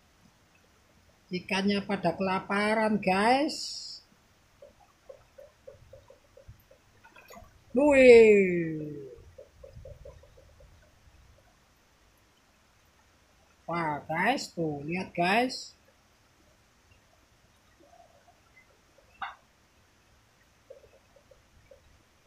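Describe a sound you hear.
Fish splash softly at the surface of the water.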